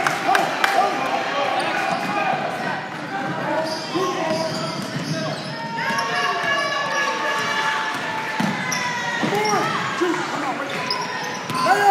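Children call out to each other across the court.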